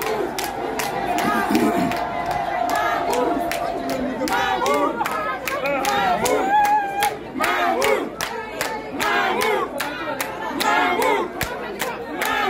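People in a crowd clap their hands in rhythm.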